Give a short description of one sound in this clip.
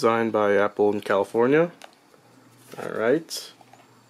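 A snug lid slides off a small cardboard box.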